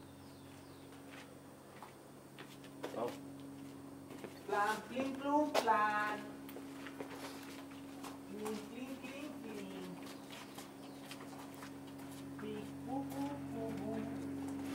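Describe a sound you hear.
Footsteps scuff slowly along a paved path.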